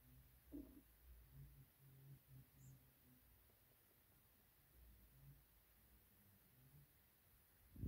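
A hand gently strokes a kitten's fur.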